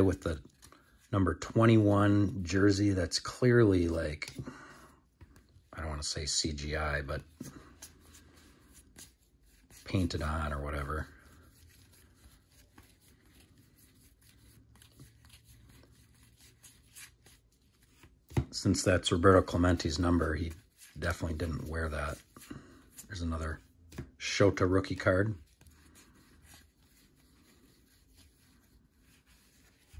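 Stiff trading cards slide and flick against each other in the hands.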